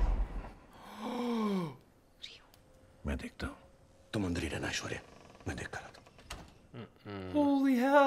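A young man exclaims in surprise.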